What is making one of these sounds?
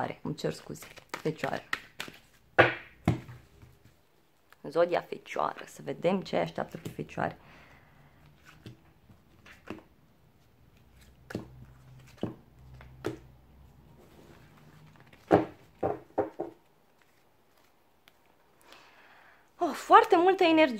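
Cards shuffle and slap softly against each other.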